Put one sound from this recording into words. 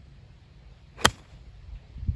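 A golf club sharply strikes a ball off a tee with a crisp crack.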